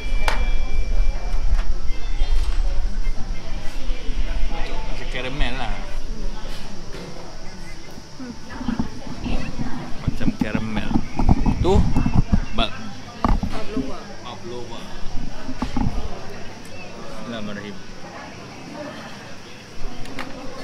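Diners chatter in the background of a busy room.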